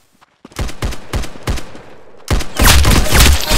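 A rifle fires a quick series of loud shots.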